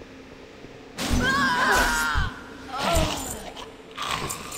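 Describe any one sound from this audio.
Weapons clash and strike in a short fight.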